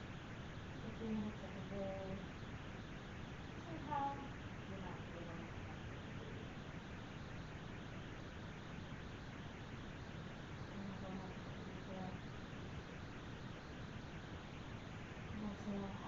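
A woman speaks calmly and softly, with pauses.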